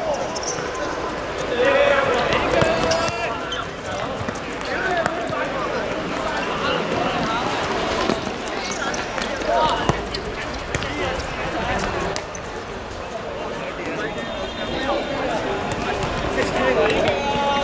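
Young men shout to each other across an open pitch.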